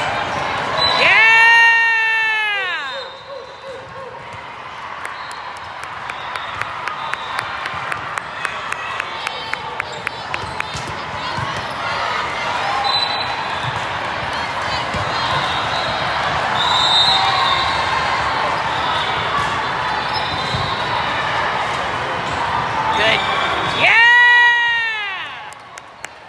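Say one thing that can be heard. A referee's whistle blows loudly.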